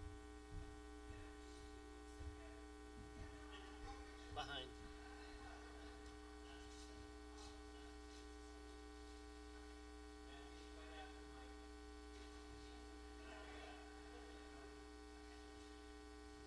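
A woman speaks quietly into a microphone.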